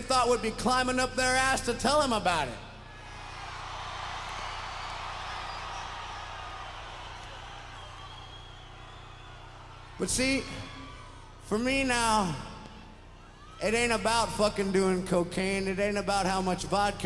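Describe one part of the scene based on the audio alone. A man sings loudly through a microphone, his voice ringing out in a large echoing hall.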